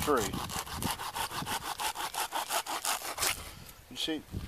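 A hand saw cuts through a branch with quick, even rasping strokes.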